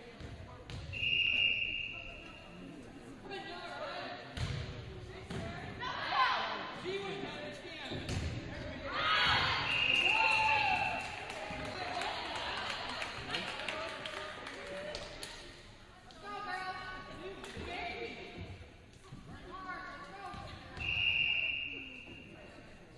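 A referee's whistle blows sharply in a large echoing gym.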